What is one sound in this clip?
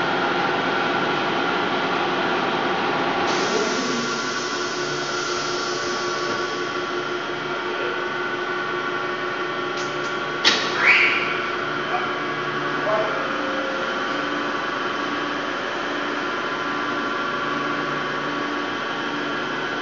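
Heavy machinery hums and whines steadily.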